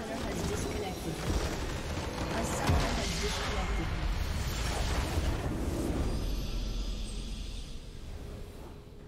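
A crystal structure shatters in a loud, rumbling explosion.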